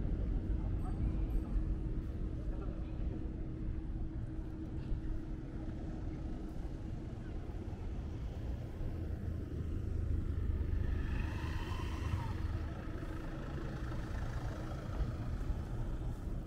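Low traffic noise rumbles steadily outdoors.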